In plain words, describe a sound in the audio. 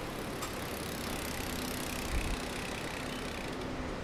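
Bicycle tyres roll past on the road.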